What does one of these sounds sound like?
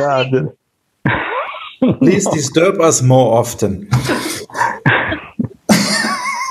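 A man speaks and chuckles over an online call.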